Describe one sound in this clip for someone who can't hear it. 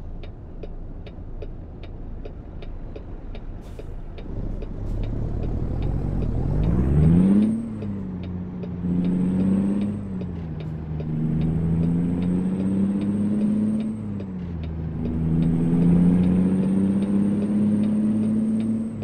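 A truck's diesel engine rumbles and revs up and down through the gears.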